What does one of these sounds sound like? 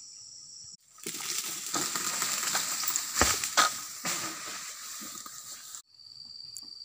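Leaves rustle and crash as a long pole cuts at a palm tree.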